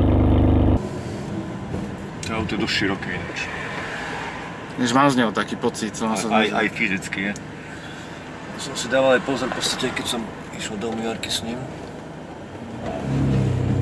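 A man talks calmly inside a car, close by.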